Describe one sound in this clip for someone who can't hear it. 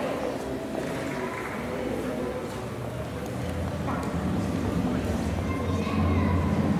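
A band of wind instruments plays.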